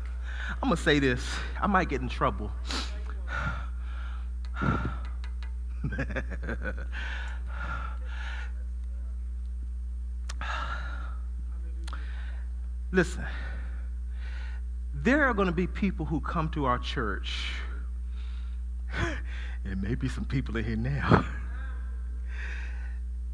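A man preaches into a microphone with animation, in pauses and bursts.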